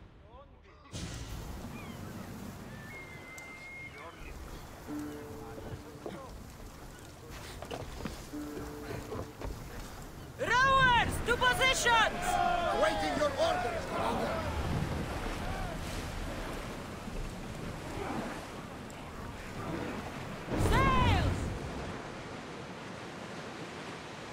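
Water rushes against the hull of a sailing ship.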